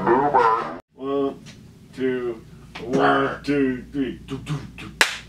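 A group of young men sing together close to a microphone.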